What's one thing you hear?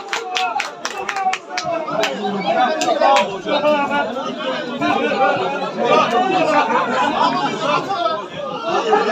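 A crowd of spectators shouts and calls out outdoors.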